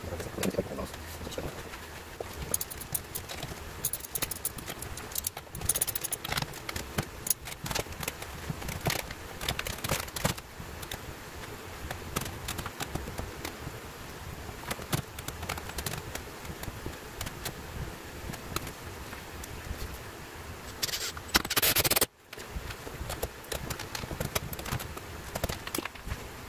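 Plastic pipe fittings knock and scrape as they are handled.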